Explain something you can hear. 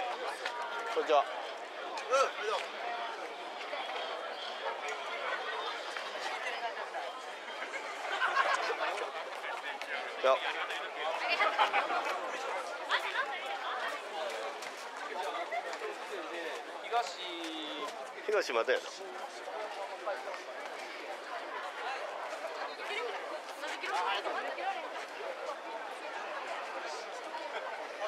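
A festival crowd chatters and calls out outdoors.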